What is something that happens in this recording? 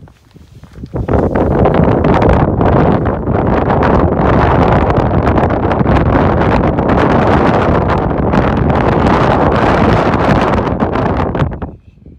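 Wind gusts across an exposed mountaintop.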